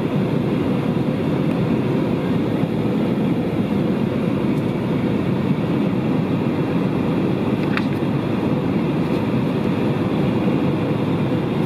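Glossy magazine pages rustle as a hand flips through them.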